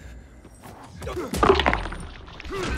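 A heavy melee blow thuds into a body.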